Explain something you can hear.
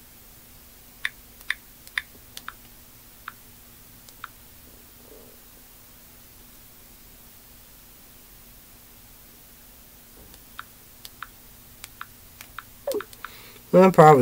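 Small objects click and tap under a young man's hands.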